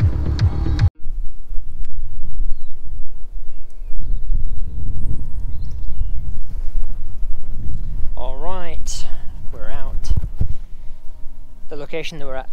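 Wind rumbles against a microphone outdoors.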